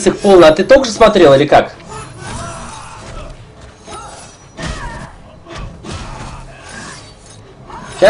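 Punches and kicks thud and smack in a fight.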